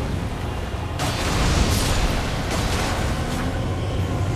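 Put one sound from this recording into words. A heavy blow lands with a loud crash and a scatter of shattering debris.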